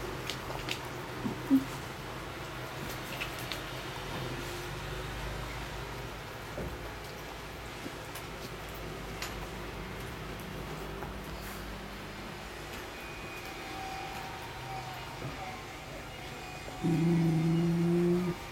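A dog licks a cat's fur with soft wet lapping.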